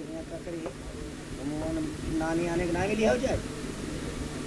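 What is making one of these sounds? A man sings loudly through a microphone and loudspeaker.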